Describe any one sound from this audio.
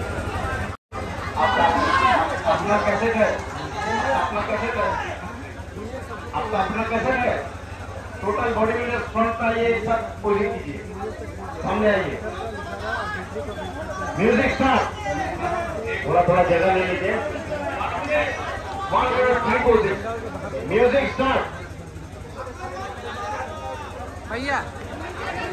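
A man announces with animation through a loudspeaker.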